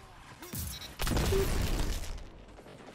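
An explosion booms in a video game.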